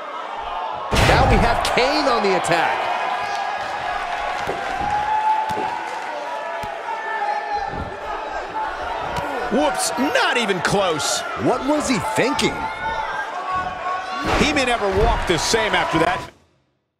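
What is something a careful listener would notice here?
Bodies slam onto a ring mat with heavy thuds.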